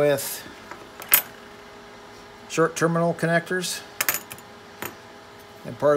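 Small metal pieces clink and tap on a hard surface.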